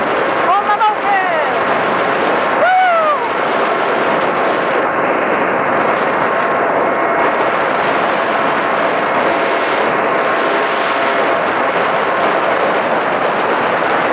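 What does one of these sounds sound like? Wind roars steadily past a moving motorcycle.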